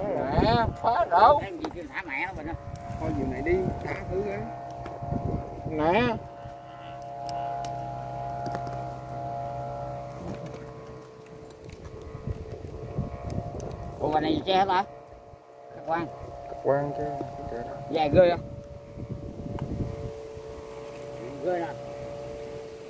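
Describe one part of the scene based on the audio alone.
Men talk nearby with animation outdoors.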